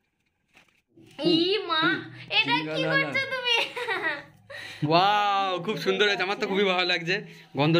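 A young girl talks and laughs with animation close by.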